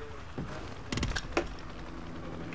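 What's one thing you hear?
A rifle clicks and rattles as it is swapped for another.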